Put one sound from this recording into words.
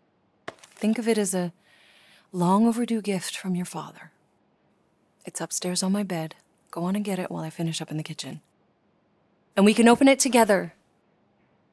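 A woman speaks calmly and warmly.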